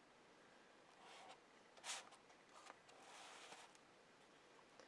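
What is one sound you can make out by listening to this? Hands rub and rustle paper on a table.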